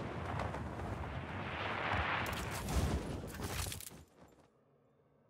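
Wind rushes loudly past a gliding wingsuit.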